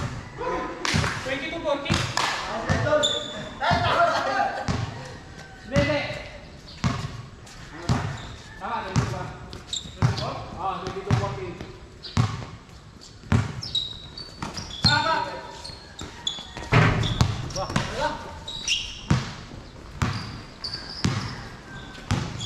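Young men call out to each other during a game.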